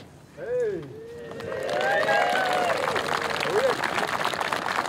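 A crowd whoops and cheers outdoors.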